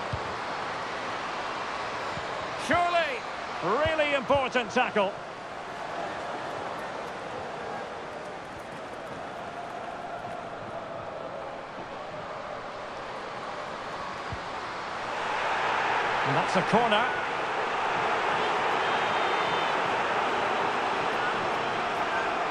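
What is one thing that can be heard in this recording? A large crowd roars steadily in a stadium, swelling louder toward the end.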